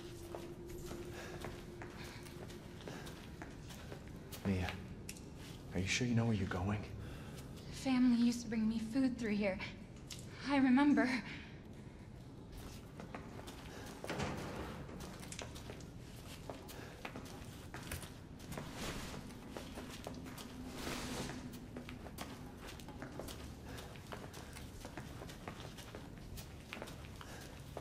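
Footsteps shuffle slowly on a hard floor.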